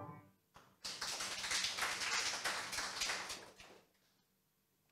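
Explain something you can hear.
An audience applauds loudly and then dies down.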